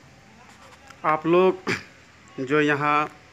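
A man speaks loudly and firmly close by.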